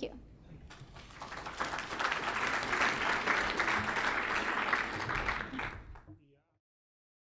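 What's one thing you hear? An audience applauds.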